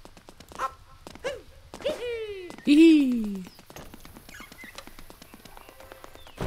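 Quick footsteps patter along a dirt path.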